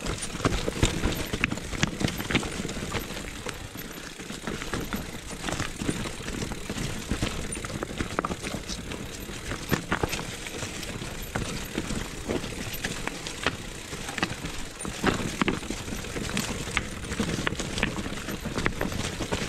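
Bicycle tyres crunch and rattle over rocky ground.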